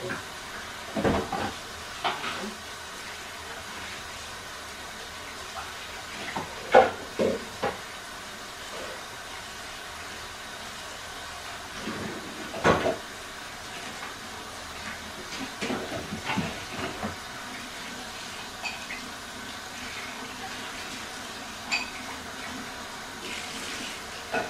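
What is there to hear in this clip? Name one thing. Dishes clink and clatter at a sink.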